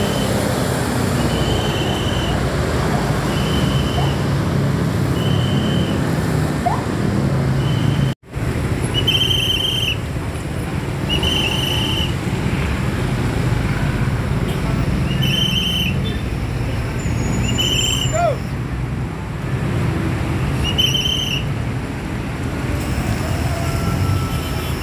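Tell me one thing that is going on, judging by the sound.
A large bus engine rumbles close by.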